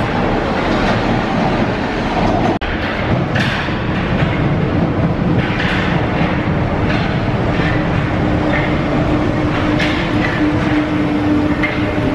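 A metro train rumbles into an echoing underground station.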